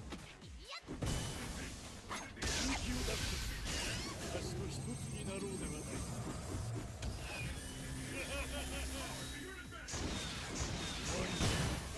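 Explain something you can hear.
Punches and kicks land with heavy thuds in a fighting game.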